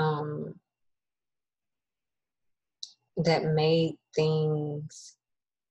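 A young woman speaks calmly and close to a microphone, in short phrases.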